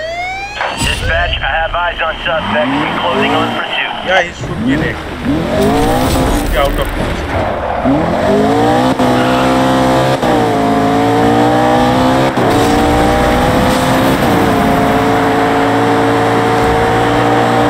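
A car engine revs and roars, rising through gears.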